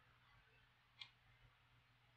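A game stone clicks onto a wooden board.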